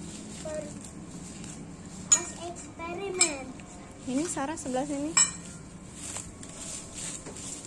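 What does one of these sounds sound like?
Gloved hands rustle through grass.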